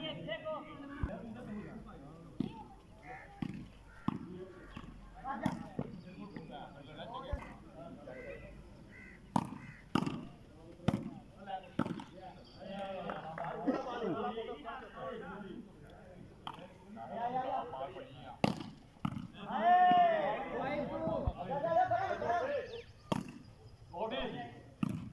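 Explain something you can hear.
A volleyball is struck with hands in sharp slaps.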